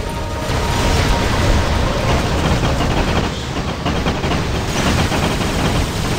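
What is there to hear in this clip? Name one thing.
Heavy guns fire in rapid, loud bursts.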